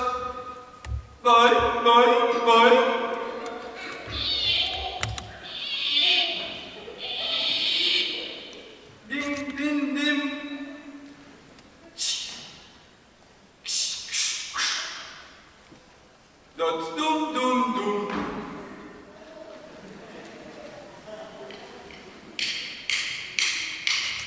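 A harmonica plays a bright tune in a large echoing hall.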